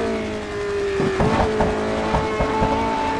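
A racing car engine pops and crackles as the car slows into a bend.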